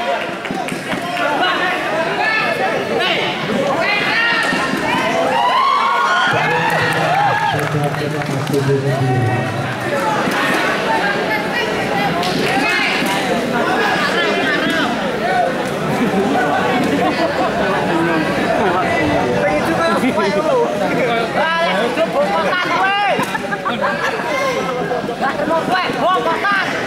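A crowd of spectators chatters and calls out, echoing in a large hall.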